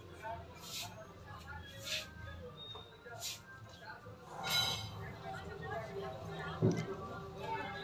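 A metal wrench clicks and scrapes against a bolt.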